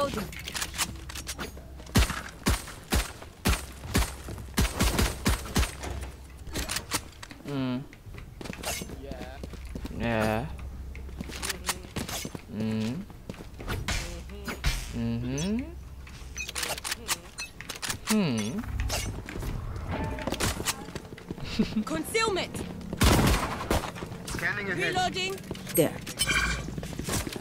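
Game sound effects click and thud in quick bursts.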